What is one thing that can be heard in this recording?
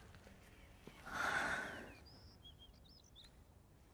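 A woman sobs softly.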